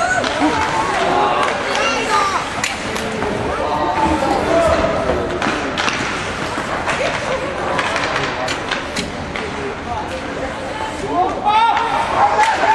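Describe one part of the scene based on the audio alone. Children shout and call out across an echoing rink.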